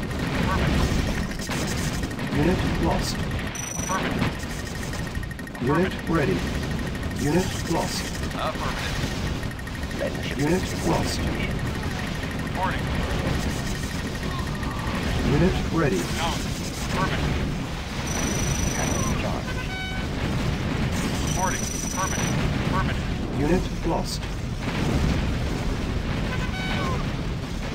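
Gunfire and explosions crackle and boom in a battle.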